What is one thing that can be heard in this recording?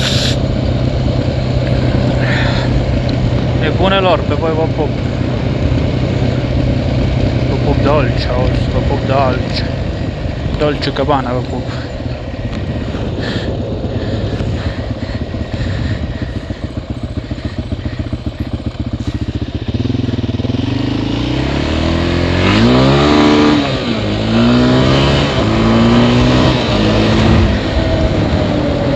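An off-road quad bike engine rumbles and putters close by.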